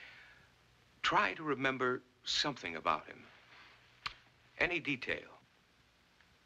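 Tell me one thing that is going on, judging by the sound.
A middle-aged man speaks calmly and firmly nearby.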